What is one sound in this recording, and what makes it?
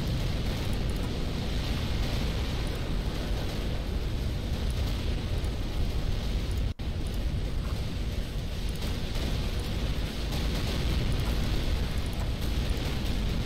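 Energy weapons fire in a steady rumbling battle din.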